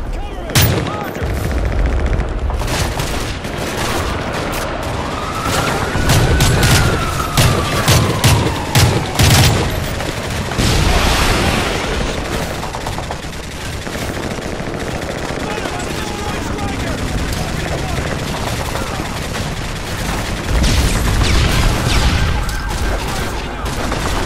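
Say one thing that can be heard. Explosions rumble and boom in the distance.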